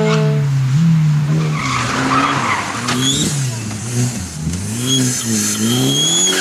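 A rally car engine revs hard and roars close by.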